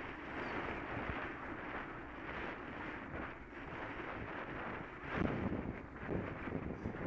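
Wind buffets the microphone in strong gusts outdoors.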